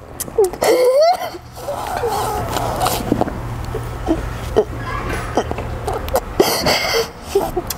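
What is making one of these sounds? A young woman sobs and wails close by.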